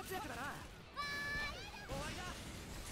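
A short electronic tone chimes in a game.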